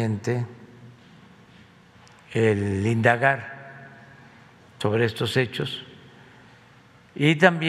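An elderly man speaks slowly and calmly into a microphone, with pauses between phrases.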